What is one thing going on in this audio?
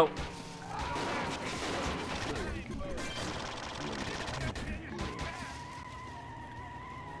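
A car engine revs and tyres screech.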